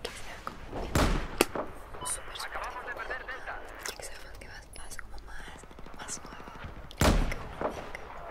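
A sniper rifle fires a loud shot.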